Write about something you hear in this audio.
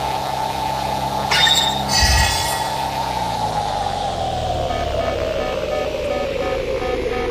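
A jet engine roars steadily, its pitch slowly dropping.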